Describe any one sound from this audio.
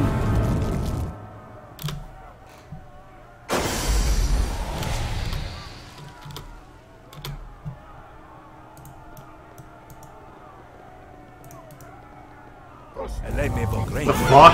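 A burst of magic fire roars and crackles.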